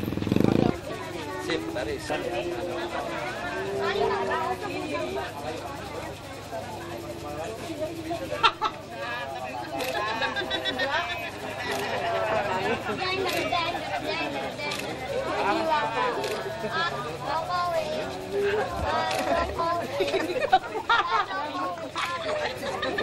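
A crowd of people chatter and talk over each other outdoors.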